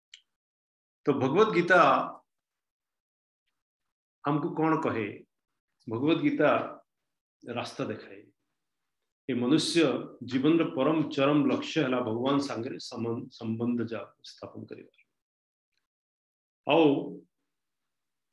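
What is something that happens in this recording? A man speaks calmly through a microphone over an online call, with pauses.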